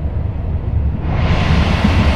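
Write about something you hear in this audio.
A passing train rushes by with a sudden loud whoosh.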